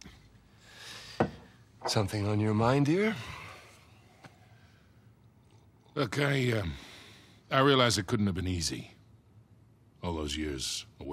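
An older man speaks warmly, close by.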